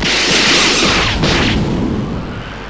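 A huge explosion roars and crackles with electric bursts.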